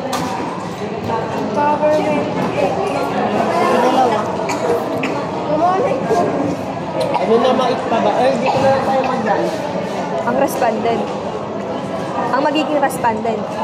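A young woman speaks casually close by.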